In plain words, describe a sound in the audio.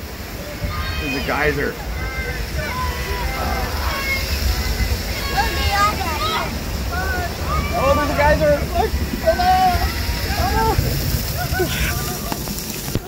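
A young boy talks excitedly.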